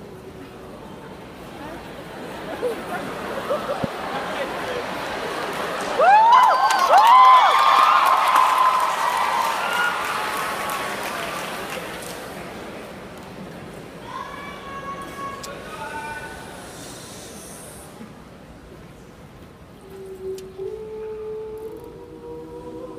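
A mixed choir sings together in a large echoing hall, swelling and fading.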